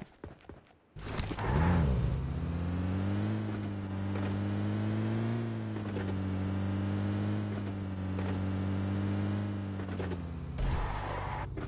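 A jeep's engine drones as the jeep drives.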